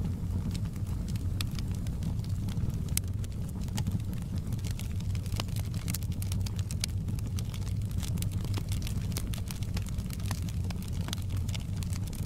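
Burning logs crackle and pop sharply.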